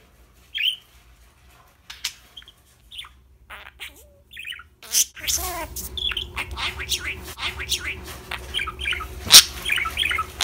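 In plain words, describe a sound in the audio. A budgie chirps and warbles close by.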